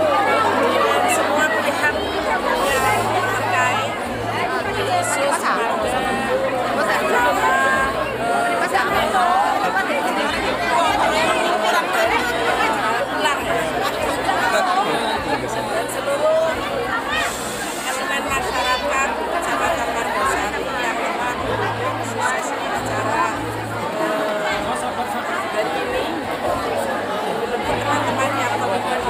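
An older woman speaks calmly into microphones close by.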